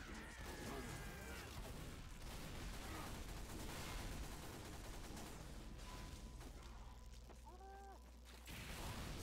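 A healing beam in a game hums steadily.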